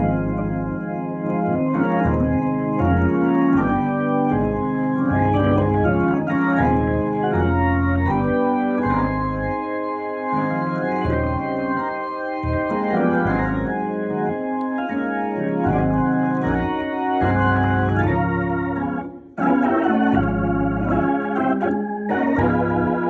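An electric organ plays chords with a deep, rich tone.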